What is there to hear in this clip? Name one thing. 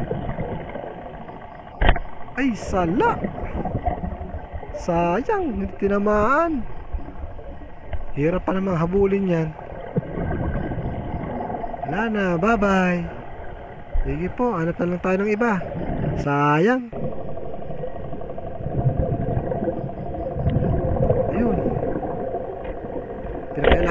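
An underwater vehicle's motors hum steadily.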